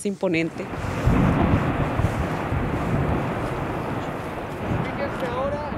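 Ice breaks off a glacier and crashes into the water with a deep rumble.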